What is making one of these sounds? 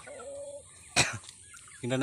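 Chicks peep softly.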